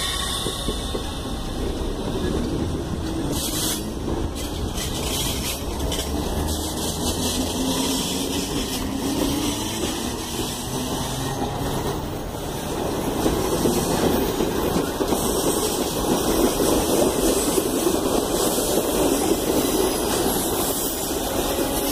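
A passenger train rumbles and clatters past close by on the rails.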